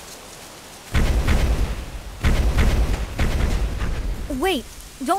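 A large beast rumbles and stomps heavily as it runs off.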